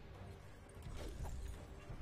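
A blade strikes a creature with a wet thud.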